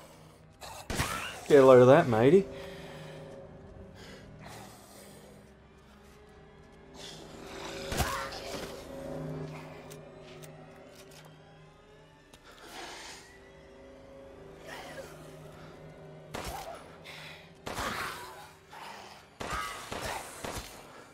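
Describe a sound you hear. A shotgun fires loudly, several times.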